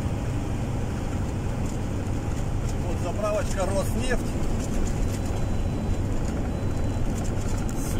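Tyres hum on asphalt.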